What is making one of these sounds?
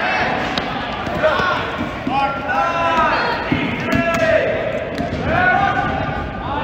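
Young men shout across a large echoing hall.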